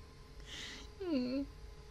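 A young woman speaks briefly close to a microphone.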